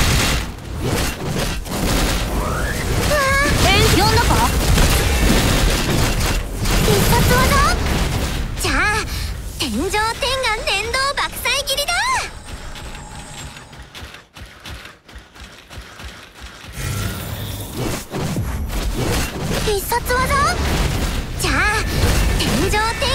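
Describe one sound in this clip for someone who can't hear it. Blades clash and blasts boom in rapid bursts.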